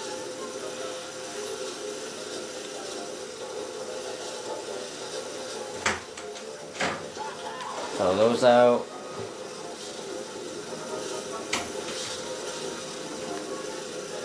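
A toy kart's engine hums steadily.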